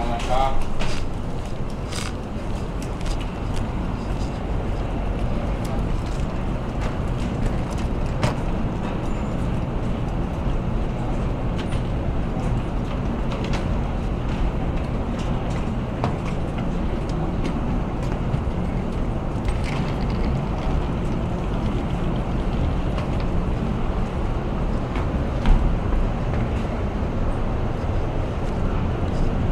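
A ship's engine rumbles low and steadily.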